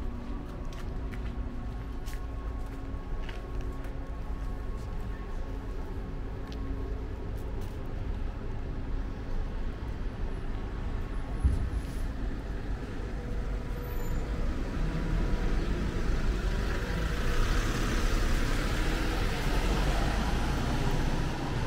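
Road traffic hums steadily nearby outdoors.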